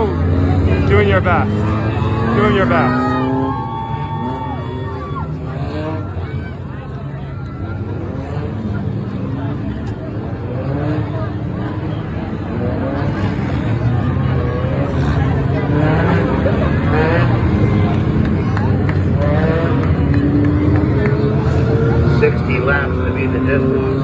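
Many race car engines roar and whine steadily around a track outdoors.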